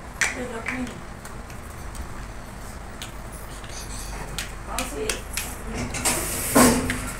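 Plastic building blocks click and clatter on a hard floor.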